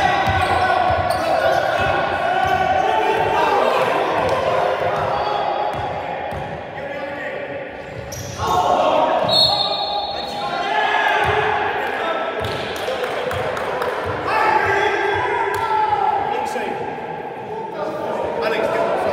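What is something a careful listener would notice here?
Basketballs bounce and thud on a wooden floor in a large echoing hall.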